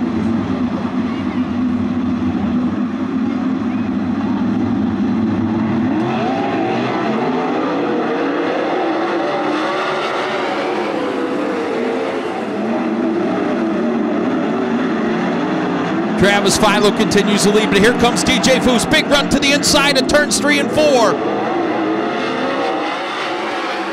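Sprint car engines roar loudly as the cars race around a dirt track.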